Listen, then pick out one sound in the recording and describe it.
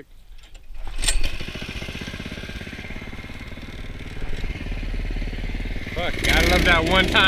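A small petrol engine sputters to life and idles roughly.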